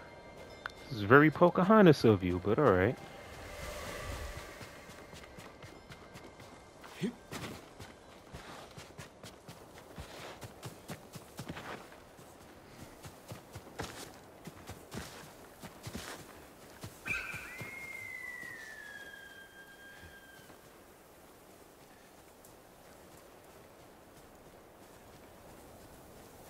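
Footsteps run quickly over sand and through grass.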